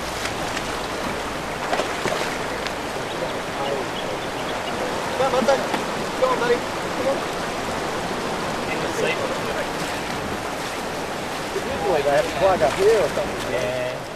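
Water flows and laps steadily.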